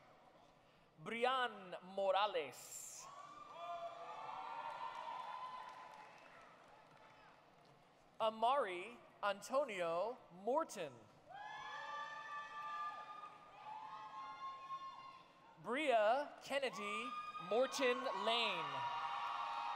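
A crowd in a large hall cheers and whoops loudly in bursts.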